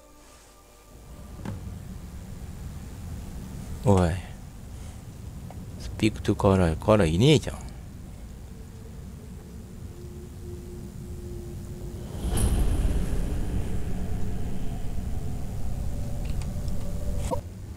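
A low rumble fills an echoing hall.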